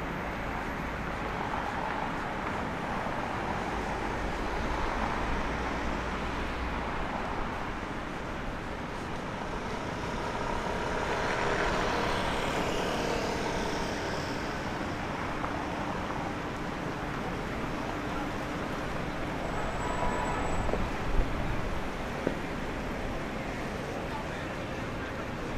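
Steady city traffic hums in the distance outdoors.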